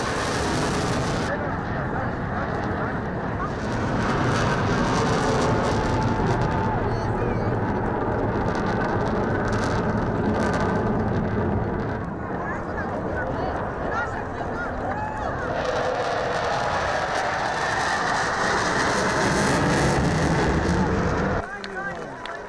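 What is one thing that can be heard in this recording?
Jet engines roar loudly overhead.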